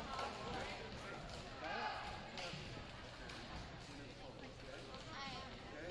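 A crowd of voices murmurs and chatters in a large echoing gym.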